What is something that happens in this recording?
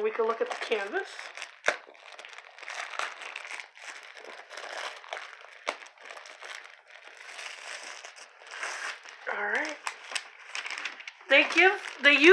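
Paper rustles and crinkles as it is handled and rolled up.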